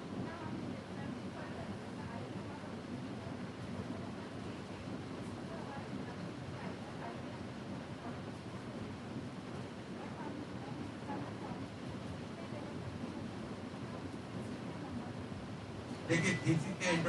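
A crowd of young people murmurs and chatters quietly.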